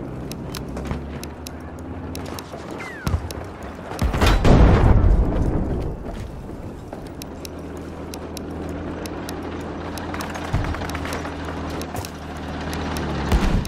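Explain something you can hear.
A rifle fires repeated sharp shots.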